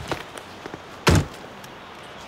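A car door shuts with a thud.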